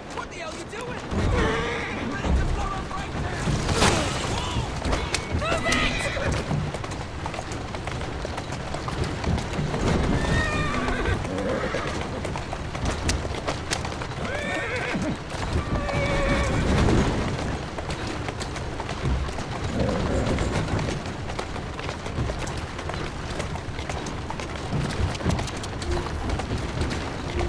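Horse hooves clop steadily on cobblestones.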